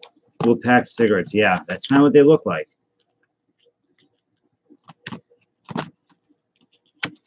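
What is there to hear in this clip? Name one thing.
Hands rustle and crinkle foil-wrapped card packs.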